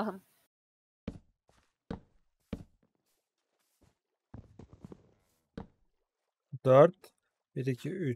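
A young man speaks close to a microphone, with animation.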